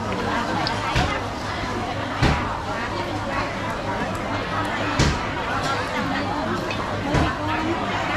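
Utensils clink and knock.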